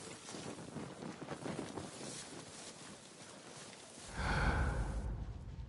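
A fire crackles softly nearby.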